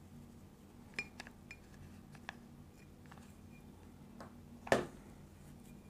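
Fingers tap and knock against a glass jar.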